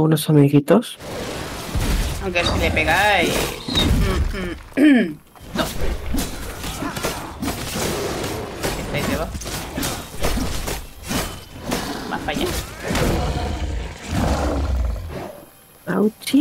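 A large beast stomps heavily in a game.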